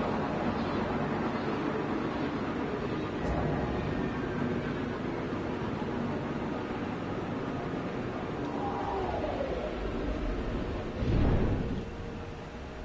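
A spacecraft engine roars steadily, then quiets.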